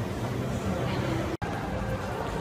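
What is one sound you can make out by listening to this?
An escalator hums as it moves.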